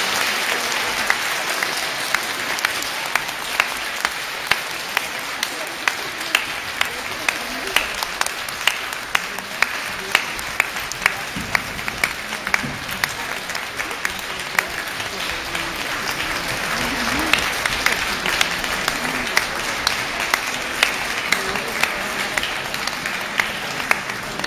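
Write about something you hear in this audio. A crowd claps in a slow, steady rhythm.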